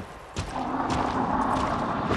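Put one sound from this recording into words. A blade swishes and strikes in quick slashes.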